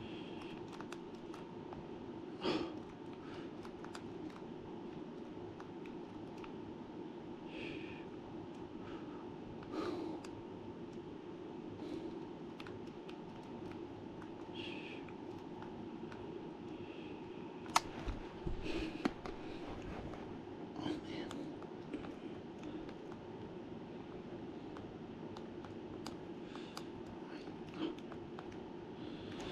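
Buttons on a handheld game console click softly under a thumb.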